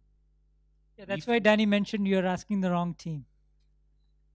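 A second man speaks with animation into a microphone, heard over loudspeakers.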